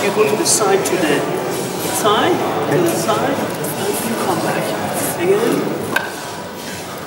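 A man talks with animation in a large echoing hall.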